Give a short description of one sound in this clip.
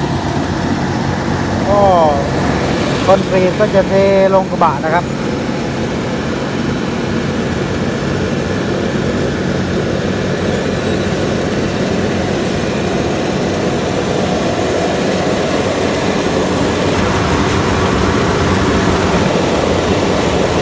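A large diesel engine rumbles steadily close by.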